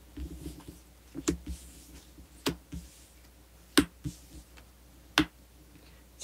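Playing cards are laid down on a table with soft taps.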